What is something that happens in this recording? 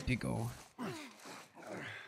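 Dry leaves rustle under someone crawling.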